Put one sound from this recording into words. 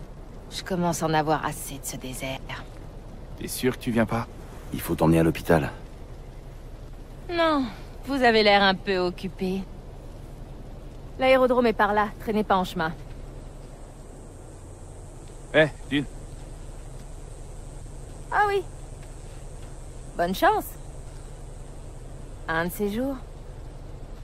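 A young woman speaks with feeling, close by.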